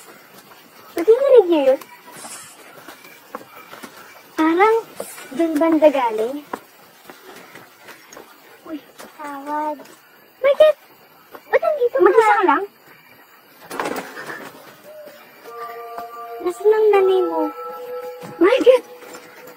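Young women call out and talk anxiously.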